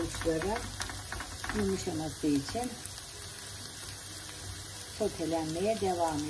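A spatula stirs and scrapes food in a pan.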